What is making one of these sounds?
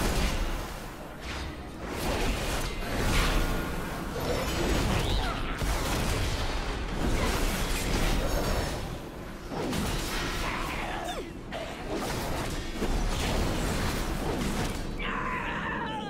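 Fantasy battle sounds of spells and weapons crash and whoosh.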